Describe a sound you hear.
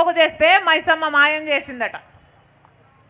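A woman speaks loudly and with passion into a microphone.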